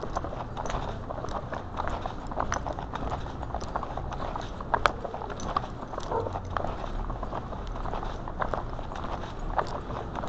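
Footsteps tap steadily on pavement close by.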